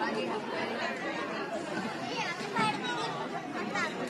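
A woman laughs nearby.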